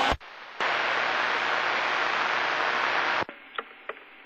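A radio hisses with loud, steady static.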